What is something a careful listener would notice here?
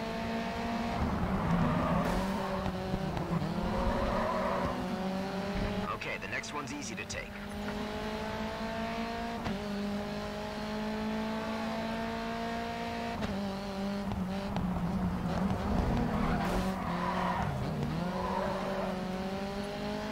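A racing car engine roars at high revs, climbing in pitch through each gear and dropping at each gear change.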